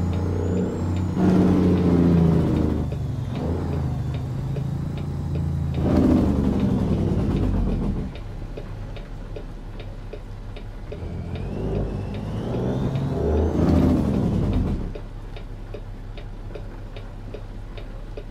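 A truck engine rumbles and shifts through gears.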